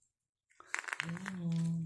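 A young boy lets out a long, drawn-out vocal sound close by.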